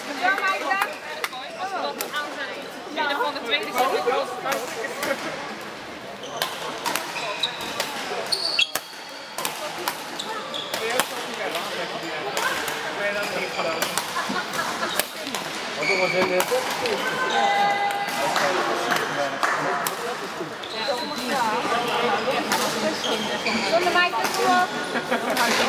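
Many men and women chatter and call out around the hall.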